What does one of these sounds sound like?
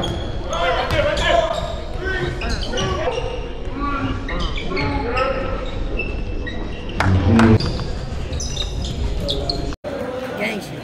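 Basketballs bounce and shoes squeak on a hard court in a large echoing gym.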